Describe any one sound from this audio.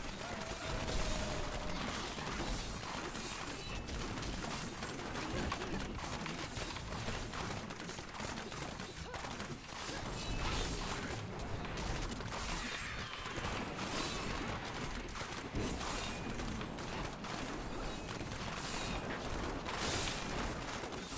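Monsters are struck with repeated impacts.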